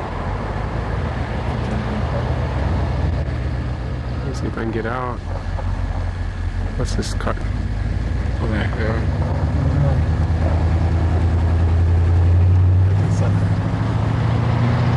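A vehicle engine rumbles steadily throughout.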